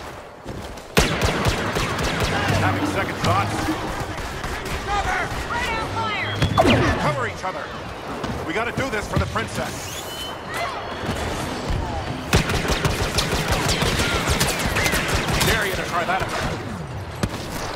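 Blaster pistols fire in rapid bursts.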